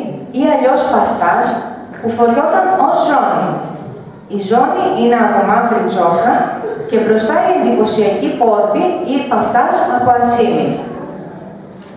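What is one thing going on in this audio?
A woman speaks clearly and with feeling, heard across an echoing hall.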